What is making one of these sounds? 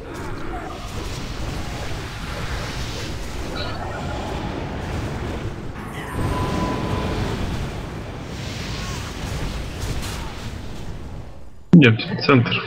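Spells crackle and blast amid the clash of a battle in a game.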